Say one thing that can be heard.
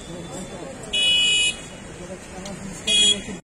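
A car horn honks loudly twice.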